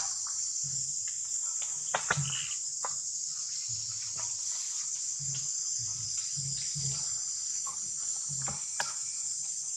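Dry leaves rustle as a monkey walks over them.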